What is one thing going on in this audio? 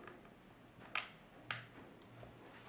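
A cable plug clicks into a socket.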